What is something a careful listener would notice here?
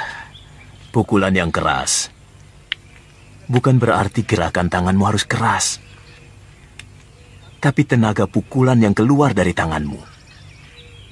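A teenage boy speaks quietly, close by.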